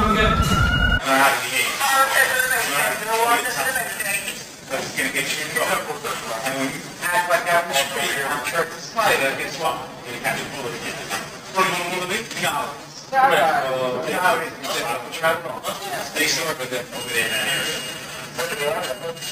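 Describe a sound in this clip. Young men argue loudly and with animation, close by, in an echoing tiled room.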